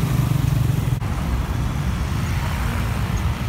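A motorbike engine buzzes past close by.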